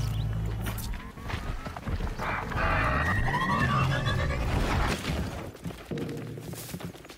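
Footsteps run quickly through rustling grass.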